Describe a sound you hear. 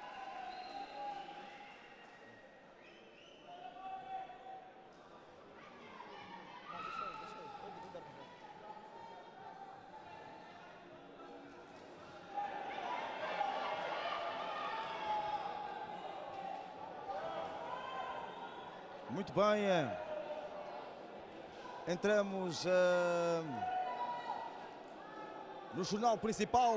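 A crowd chatters and calls out in a large arena, growing louder partway through.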